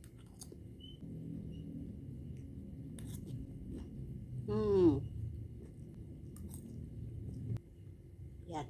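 A woman slurps noodles noisily.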